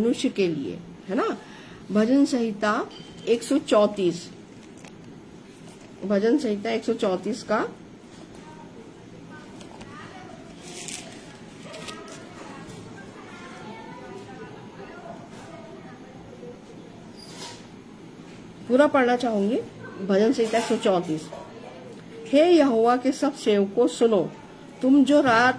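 An elderly woman speaks calmly and close by, with pauses.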